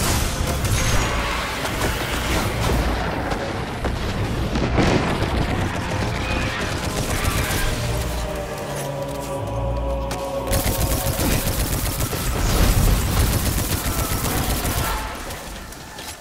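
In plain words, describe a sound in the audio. Gunfire and explosions crackle and boom in a video game battle.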